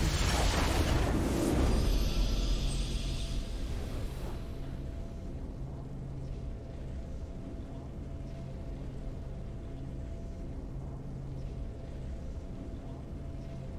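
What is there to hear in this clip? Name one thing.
A triumphant victory fanfare plays, then soft music hums.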